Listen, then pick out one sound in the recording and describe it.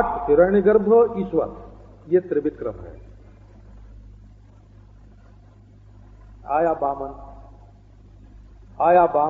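An elderly man speaks calmly, with long pauses, heard through a microphone.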